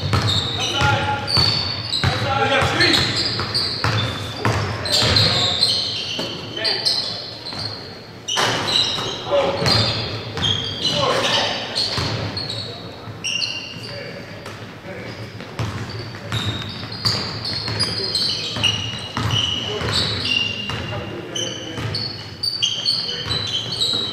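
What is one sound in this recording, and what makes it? Sneakers squeak sharply on a hardwood floor in a large echoing gym.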